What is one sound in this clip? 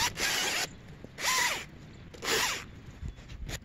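An electric chainsaw whirs in short, loud bursts.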